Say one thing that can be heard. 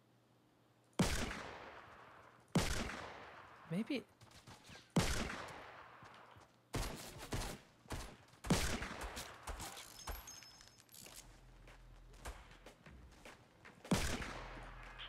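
Loud gunshots crack one at a time, each with a ringing tail.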